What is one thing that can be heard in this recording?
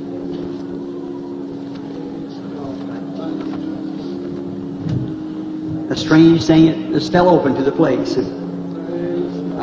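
A man preaches with passion through a microphone.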